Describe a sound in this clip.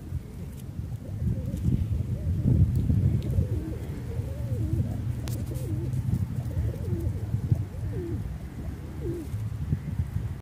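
Pigeons coo softly close by.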